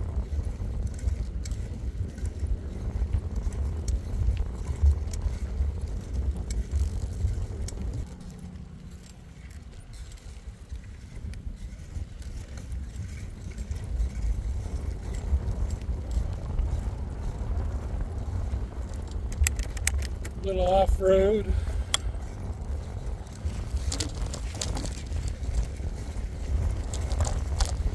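Wind rumbles loudly against a microphone outdoors.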